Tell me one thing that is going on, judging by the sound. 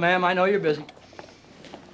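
Wheelchair wheels roll across a hard floor.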